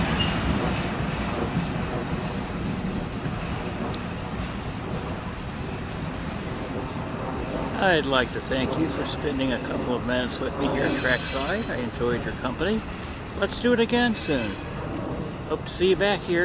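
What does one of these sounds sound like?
A freight train rumbles away along the tracks and slowly fades.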